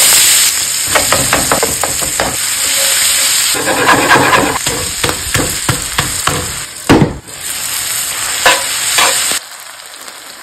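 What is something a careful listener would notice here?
Ground meat sizzles loudly in a hot pan.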